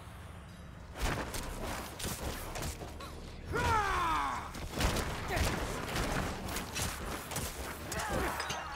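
Weapons clash and blows thud in a fierce fight.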